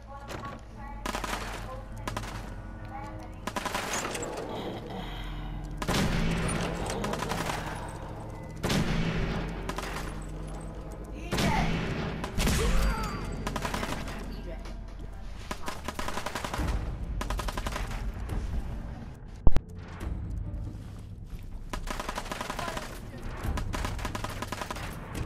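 A heavy gun fires in loud, booming bursts that echo through a large hall.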